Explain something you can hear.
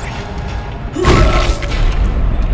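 A heavy weapon fires with a loud, sharp blast.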